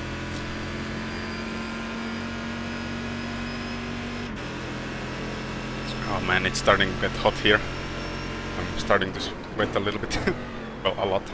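A race car engine drones steadily at high revs.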